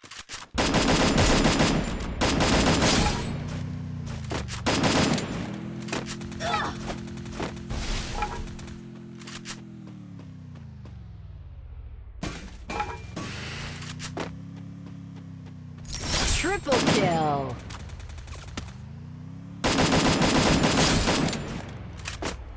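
Gunfire from an automatic rifle bursts rapidly.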